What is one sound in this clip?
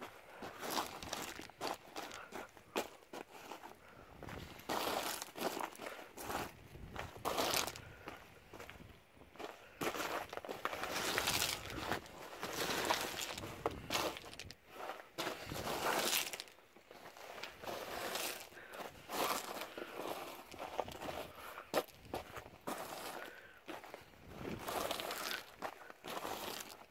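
Boots crunch on loose gravel with each step.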